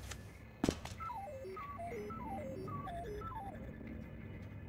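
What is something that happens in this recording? Quick electronic blips step downward in pitch, over and over, as text types out.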